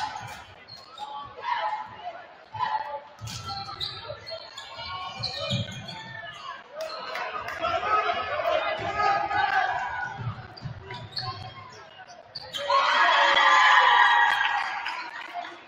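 A basketball bounces on a hardwood court in an echoing gym.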